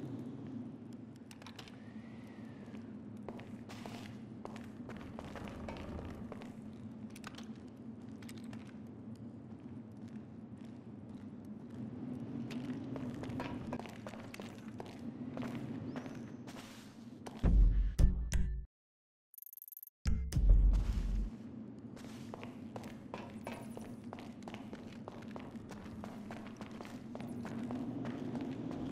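Footsteps crunch slowly on gravel and rock.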